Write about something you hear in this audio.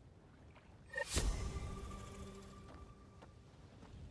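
A gun fires with a sharp blast.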